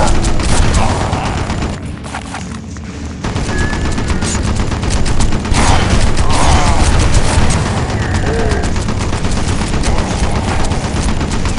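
A machine gun fires rapid, loud bursts.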